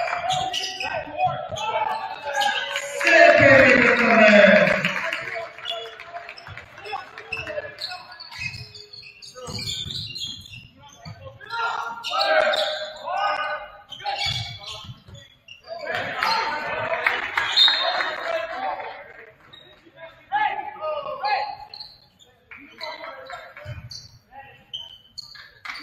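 Spectators cheer and chatter in an echoing gym.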